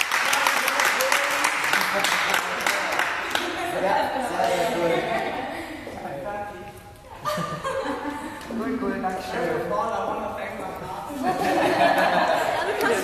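Young adults speak and read out lines aloud in a large echoing room.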